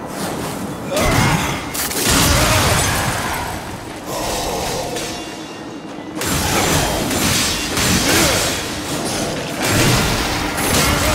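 Weapons clash and slash in a fight.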